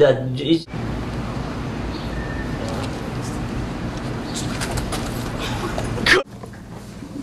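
Young men grunt and laugh outdoors.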